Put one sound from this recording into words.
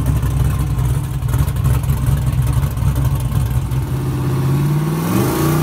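A car engine roars loudly, then revs higher as the car pulls away.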